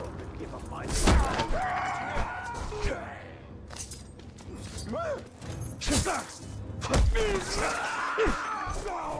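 Sword blows land with sharp, heavy thuds.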